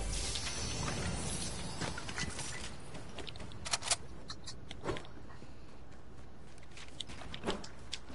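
Footsteps patter quickly on wooden floors.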